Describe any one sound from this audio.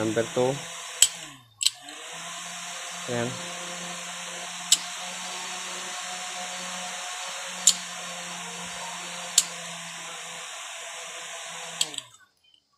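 Push-button switches click sharply one at a time.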